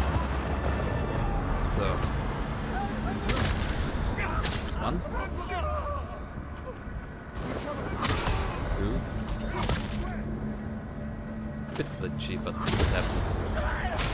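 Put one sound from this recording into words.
Swords clash and slash in a game fight.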